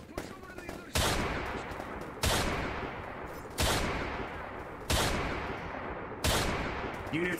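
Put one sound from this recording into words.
A gun fires single loud shots, each followed by a short echoing tail.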